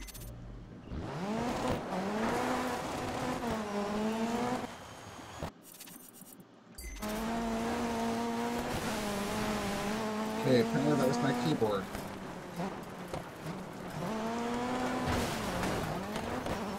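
A rally car engine revs hard and roars, shifting up and down through the gears.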